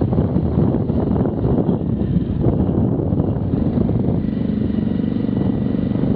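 A truck engine rumbles as the truck passes close by.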